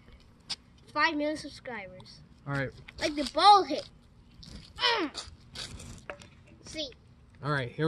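A young boy talks with excitement close by.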